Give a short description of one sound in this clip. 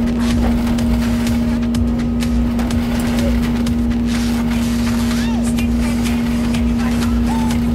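A shovel scrapes wet concrete in a metal bucket.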